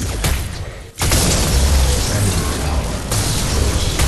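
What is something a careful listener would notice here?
A large structure crumbles and explodes with a deep rumble.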